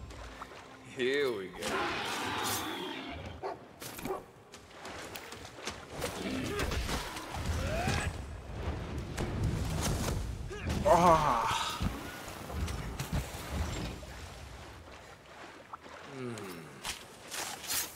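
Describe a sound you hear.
Large creatures shriek and roar.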